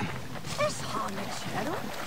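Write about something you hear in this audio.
Water splashes around wading legs.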